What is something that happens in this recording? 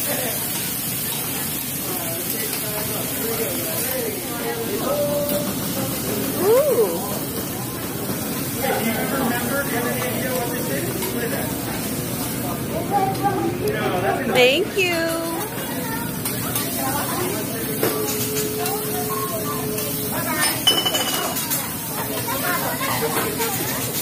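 A metal spatula scrapes and taps on a hot griddle.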